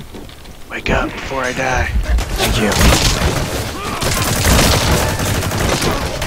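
A body thuds heavily onto hard ground.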